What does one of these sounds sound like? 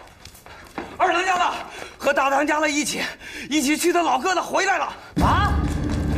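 A young man shouts urgently.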